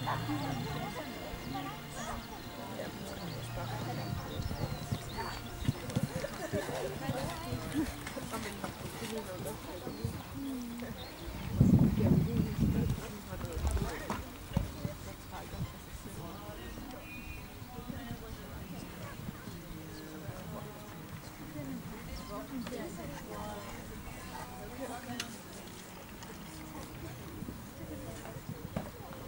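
A horse's hooves thud on soft sand.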